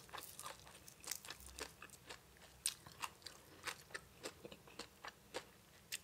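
Fresh herbs crackle and snap between fingers.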